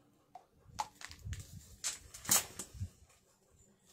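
Small plastic objects click and tap on a tabletop.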